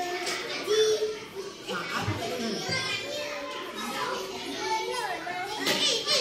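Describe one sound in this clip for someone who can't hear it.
Young children chatter and talk nearby.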